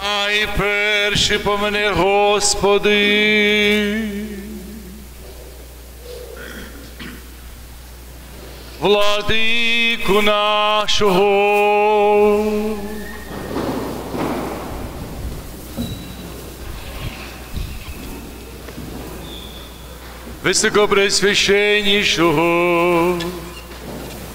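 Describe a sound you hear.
A group of voices sings a slow chant in a large echoing hall.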